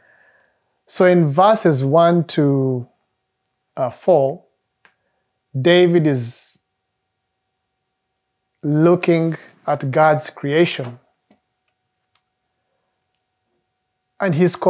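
A man speaks calmly and warmly, close to a microphone.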